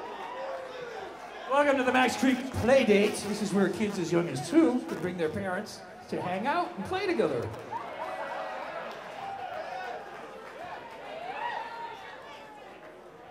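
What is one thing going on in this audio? A band plays electric guitars and drums on a live stage.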